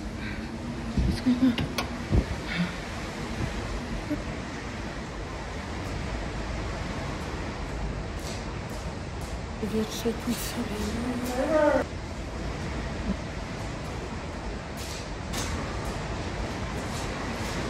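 A man strikes a glass window with a tool, making dull knocks.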